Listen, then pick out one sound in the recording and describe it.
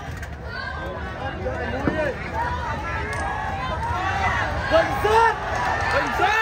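A large crowd cheers and shouts excitedly nearby.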